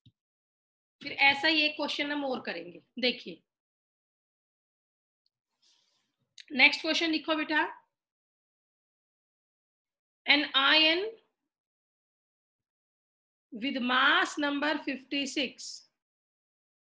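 A woman speaks calmly into a microphone, in short bursts with pauses.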